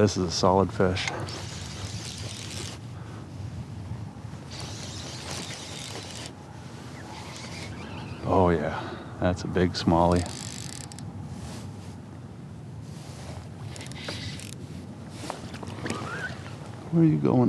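Water laps against the hull of a small boat.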